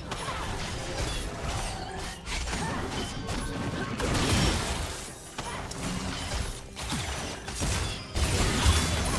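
Game spell effects crackle, zap and boom in quick bursts.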